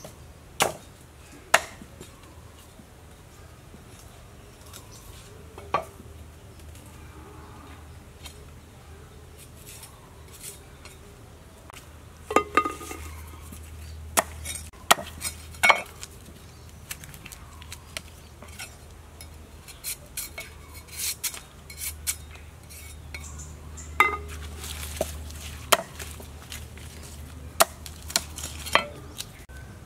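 A cleaver chops sharply against a wooden board.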